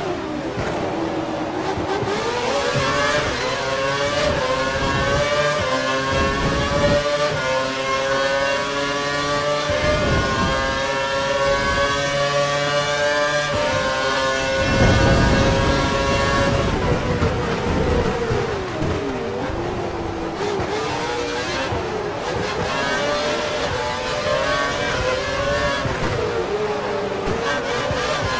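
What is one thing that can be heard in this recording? A racing car engine screams loudly, rising in pitch through the gears and dropping when braking.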